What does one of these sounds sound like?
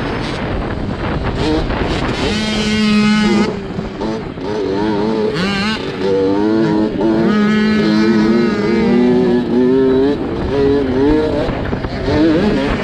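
A dirt bike engine revs up and down close by while racing.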